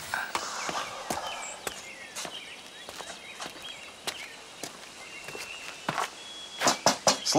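Footsteps tread slowly on hard ground.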